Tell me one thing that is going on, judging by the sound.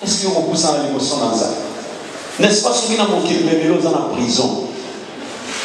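A young man speaks with animation into a microphone over a loudspeaker in an echoing room.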